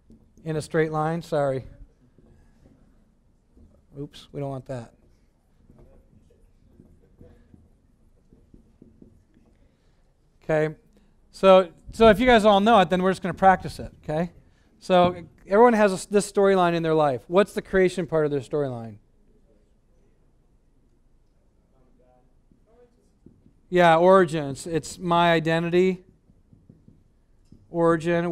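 A man speaks calmly to an audience.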